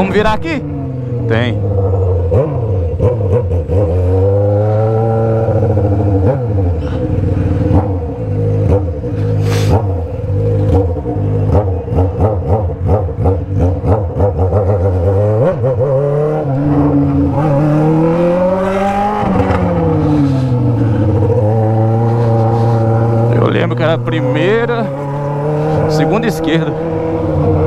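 A motorcycle exhaust crackles and pops as the rider lets off the throttle.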